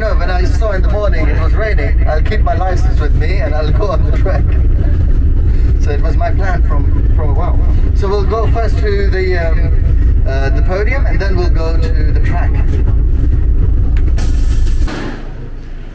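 A man speaks with animation through a microphone and loudspeaker.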